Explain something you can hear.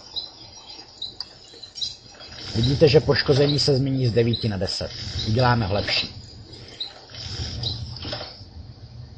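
Short wooden knocks sound.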